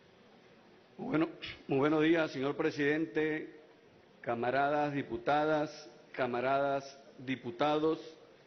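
A man speaks formally into a microphone in a large echoing hall.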